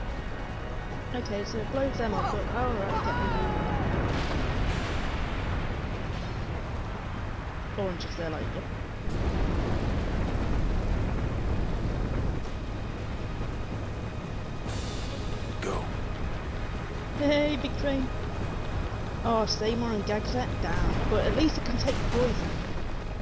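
Explosions rumble and boom nearby.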